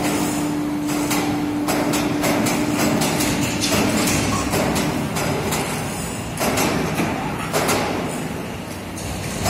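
Heavy machinery spins steel moulds with a loud, steady rumble.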